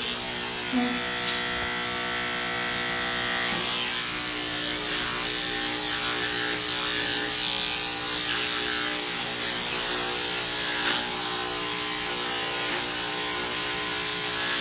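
Electric clippers hum steadily close by.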